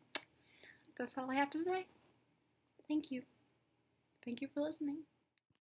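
A young woman talks casually and close into a microphone.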